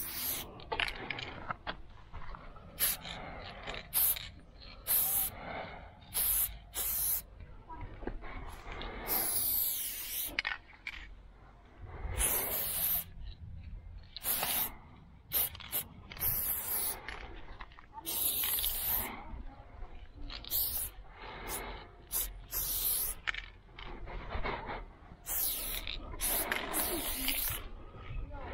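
A spray can hisses in short bursts, up close.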